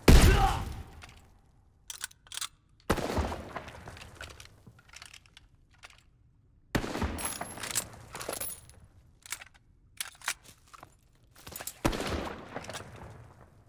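Rifle shots ring out, each with a booming echo.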